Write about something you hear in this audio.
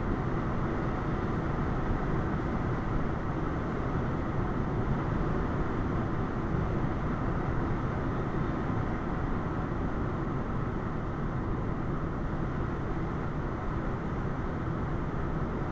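Tyres roar steadily on a road.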